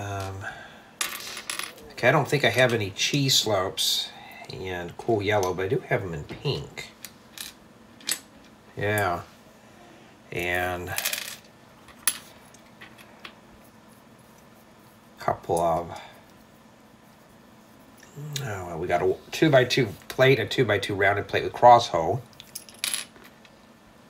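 Small plastic bricks click and rattle as they are handled.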